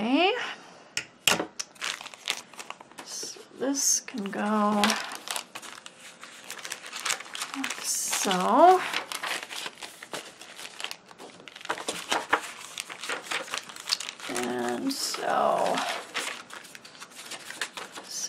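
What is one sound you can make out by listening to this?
Paper rustles and crinkles as it is handled and folded.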